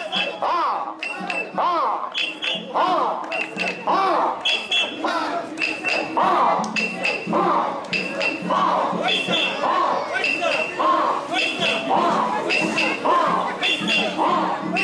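A crowd of men chants loudly and rhythmically in unison, outdoors.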